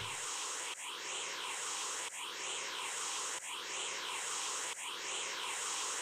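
Strong wind roars in steady, repeating gusts.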